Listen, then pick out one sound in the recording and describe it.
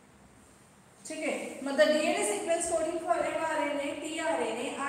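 A woman speaks clearly and calmly nearby.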